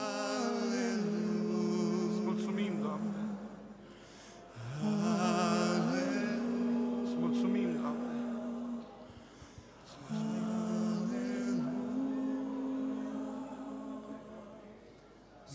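A group of men sings a slow, held hymn through microphones in an echoing hall.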